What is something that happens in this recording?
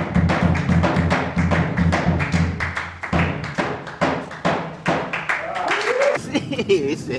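A man claps his hands in a steady rhythm.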